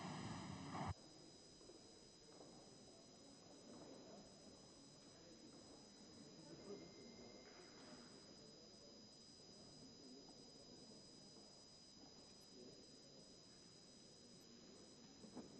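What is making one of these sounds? Quiet murmuring voices of a crowd echo in a large hall.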